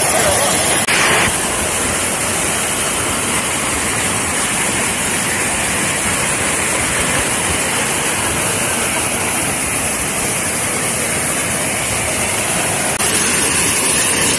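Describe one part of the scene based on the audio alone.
A waterfall roars and rushes steadily over rocks close by.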